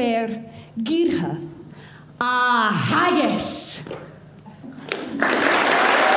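A young woman shouts with animation through a microphone in a large echoing hall.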